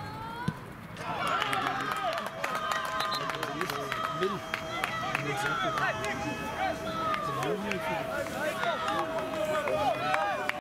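Young men shout and cheer outdoors after a goal.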